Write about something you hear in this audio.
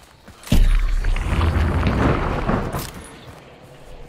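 Leafy branches rustle loudly as someone pushes through thick bushes.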